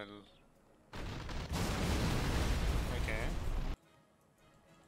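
Large explosions boom and roar.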